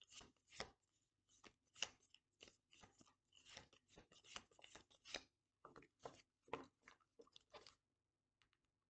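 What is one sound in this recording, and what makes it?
Playing cards riffle and slap together as a deck is shuffled by hand.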